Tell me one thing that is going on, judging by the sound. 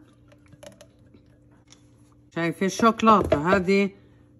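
A spatula scrapes inside a plastic jar.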